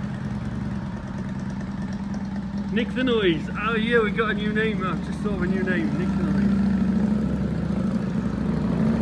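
A motorcycle engine rumbles steadily and grows louder as the motorcycle pulls away.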